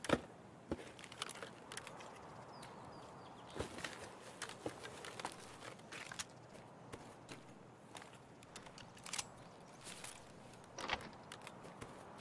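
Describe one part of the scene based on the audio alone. Gear rustles and clicks as items are moved around.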